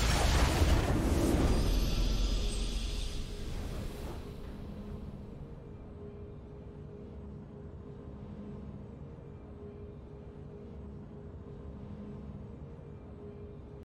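A triumphant game fanfare swells and then fades to a quiet hum.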